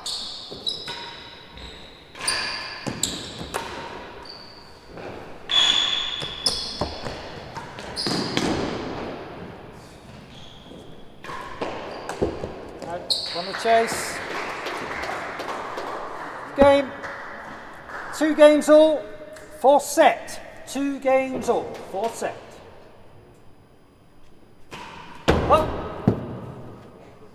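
A racket strikes a ball with sharp cracks in an echoing hall.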